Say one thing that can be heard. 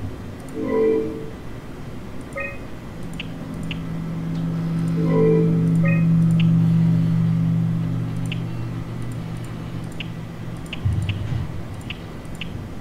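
Short interface clicks tick now and then.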